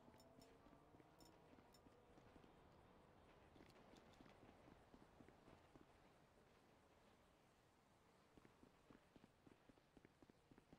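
Footsteps run on asphalt.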